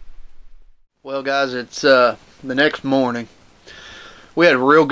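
A man speaks quietly and calmly, close to the microphone.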